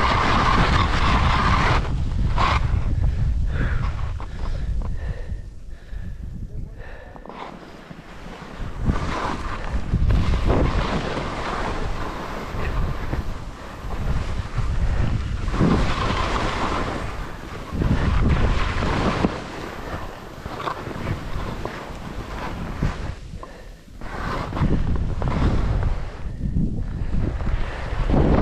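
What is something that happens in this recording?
Skis hiss and scrape over snow in bursts with each turn.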